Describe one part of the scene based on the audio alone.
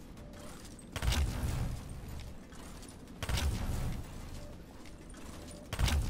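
A deep whooshing thump of a jump boost sounds.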